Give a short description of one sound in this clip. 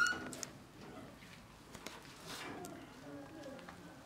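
A metal gate creaks as a man pulls it open.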